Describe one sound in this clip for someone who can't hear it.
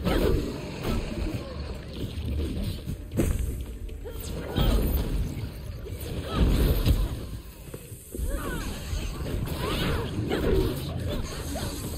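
Creatures screech as they attack.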